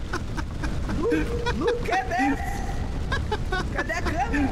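A young man laughs and talks with animation through a close microphone.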